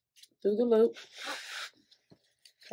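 A fabric strap rustles as it is pulled.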